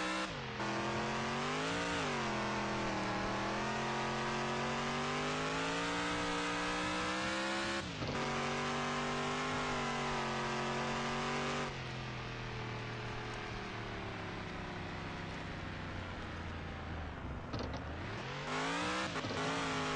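A truck engine roars and revs up and down.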